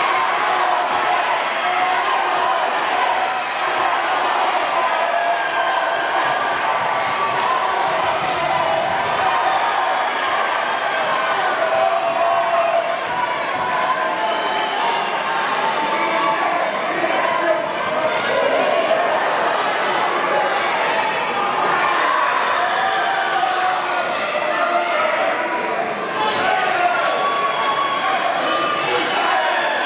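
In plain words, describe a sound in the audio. A crowd shouts and cheers loudly in a large hall.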